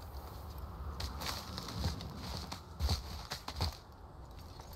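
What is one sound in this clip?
Hands grab and scrape against icy rock in quick knocks.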